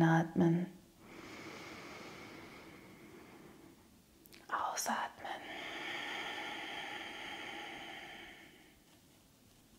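A young woman breathes in and out slowly and deeply close to a microphone.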